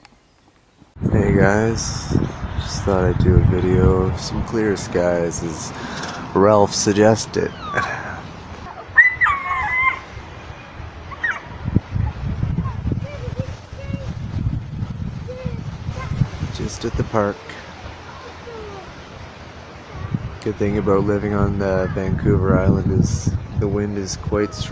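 Wind blows through the trees outdoors.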